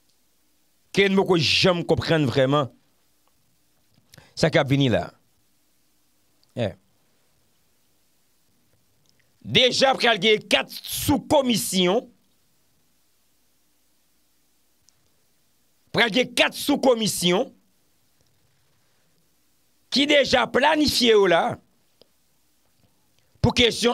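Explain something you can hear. A young man speaks with animation into a close microphone, in bursts with pauses.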